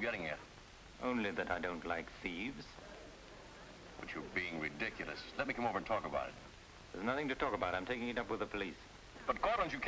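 An older man speaks smoothly into a telephone.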